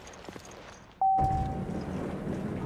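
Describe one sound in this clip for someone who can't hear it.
An elevator chimes once.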